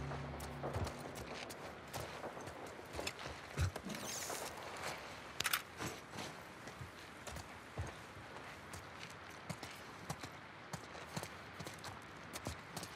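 Soft footsteps creep slowly across a hard floor.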